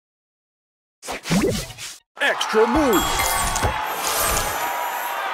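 Game sound effects chime and whoosh as gems match and burst.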